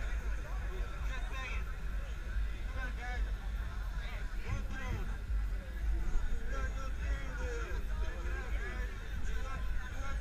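A crowd of young men and women chatters and cheers close by outdoors.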